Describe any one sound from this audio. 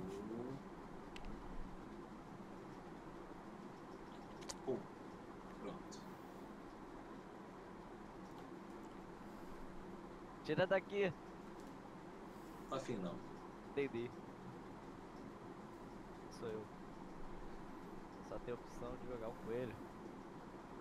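A man speaks casually through a microphone, in short bursts.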